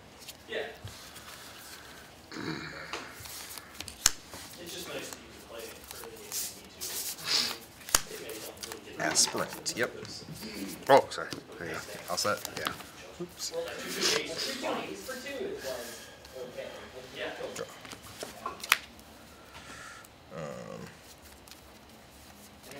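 Cards riffle and flick in a hand.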